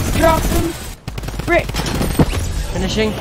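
A gun fires in quick shots.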